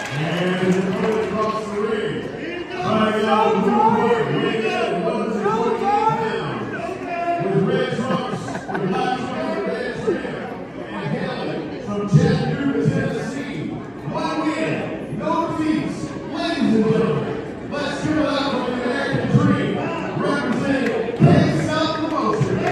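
A crowd of men and women chat nearby in a large echoing hall.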